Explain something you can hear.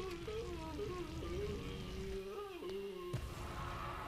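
A bursting blast rumbles and scatters debris.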